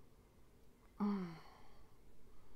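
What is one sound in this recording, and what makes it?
A young woman hums briefly, with her mouth closed.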